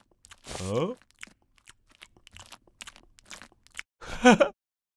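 A bear munches noisily on food.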